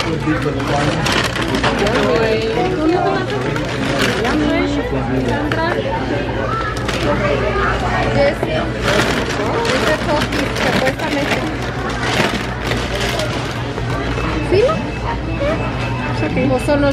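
People chatter in the background.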